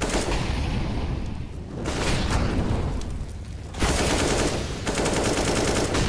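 Rapid automatic gunfire rattles in bursts.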